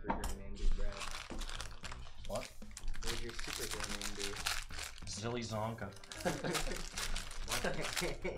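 Foil packs crinkle and rustle in someone's hands.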